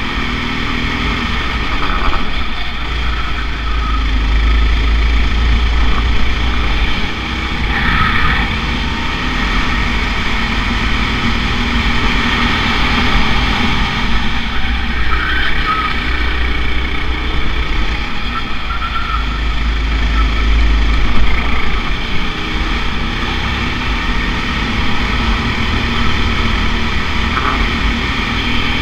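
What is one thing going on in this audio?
A kart engine buzzes loudly up close, revving up and down through the corners.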